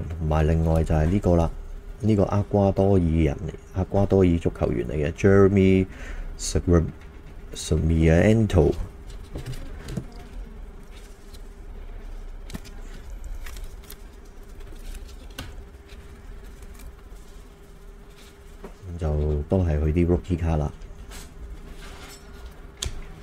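Plastic card cases tap and clatter as hands handle them.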